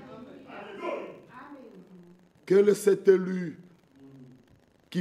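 A middle-aged man preaches with animation through a microphone in an echoing hall.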